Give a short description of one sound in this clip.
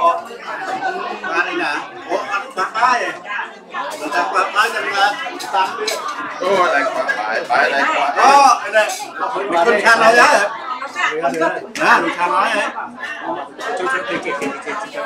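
Several men and women talk and murmur together in a busy room.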